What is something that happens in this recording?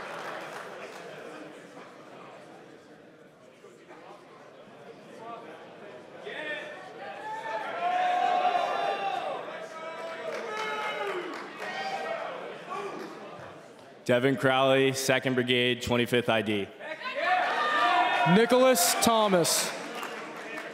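A large crowd chatters and cheers.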